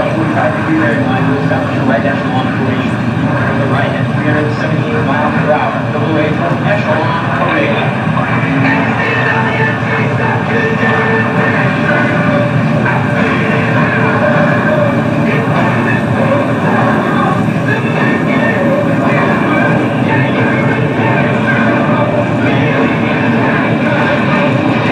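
A jet engine roars loudly as a jet flies past.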